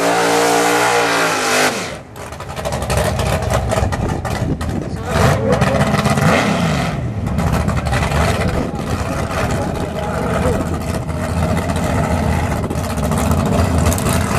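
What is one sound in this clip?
A car engine roars loudly at high revs.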